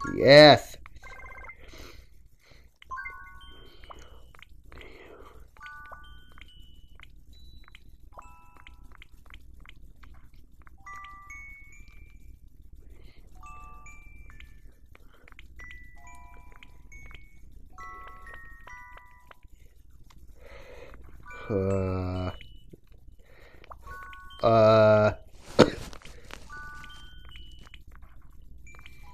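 A handheld game console plays short electronic menu beeps.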